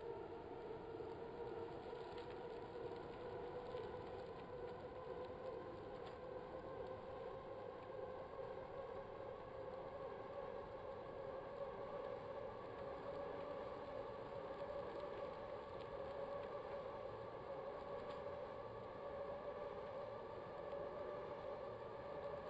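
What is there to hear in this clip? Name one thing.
A bike trainer whirs steadily as a man pedals.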